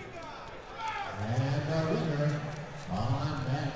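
Spectators shout loudly in an echoing hall.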